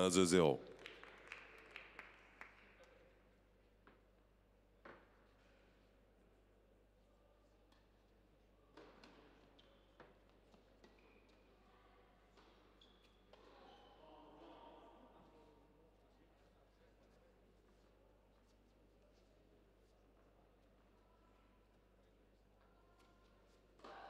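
Spectators murmur quietly in the distance.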